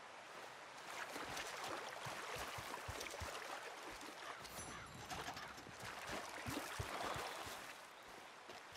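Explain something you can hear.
Water splashes under wading footsteps.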